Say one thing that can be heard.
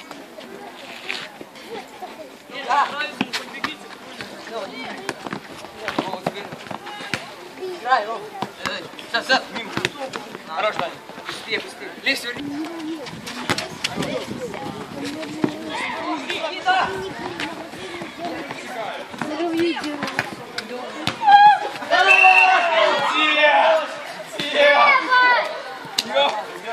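A football is kicked on a paved court with sharp thuds.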